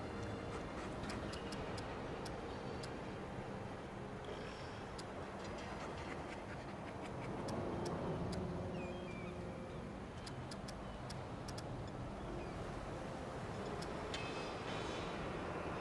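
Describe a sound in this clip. Soft menu clicks tick several times.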